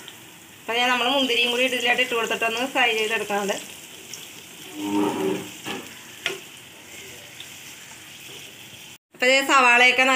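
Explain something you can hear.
A spoon scrapes and stirs in a frying pan.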